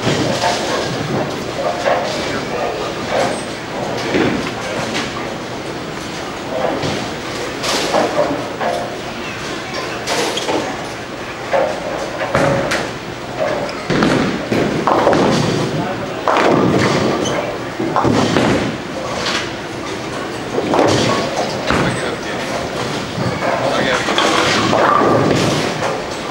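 Bowling balls rumble down lanes and pins crash in a large echoing hall.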